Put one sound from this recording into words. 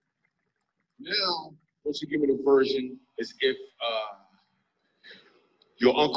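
A man talks into a microphone to an audience in a large hall.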